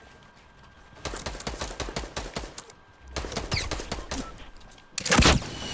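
Rapid wooden knocks and clacks sound in quick bursts.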